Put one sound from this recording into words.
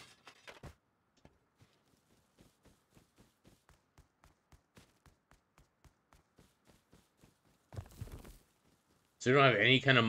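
Footsteps run quickly over grass and a road.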